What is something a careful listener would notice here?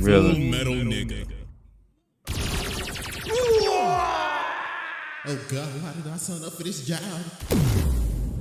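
A man speaks into a close microphone with animation.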